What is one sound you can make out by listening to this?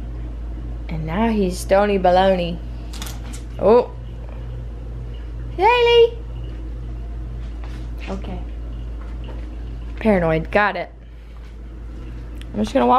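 A cat meows loudly and repeatedly nearby.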